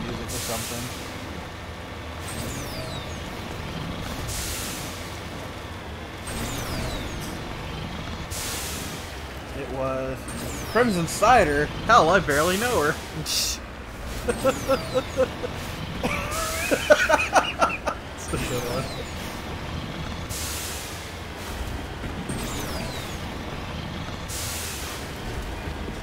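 Thrusters roar in short bursts as a vehicle jumps.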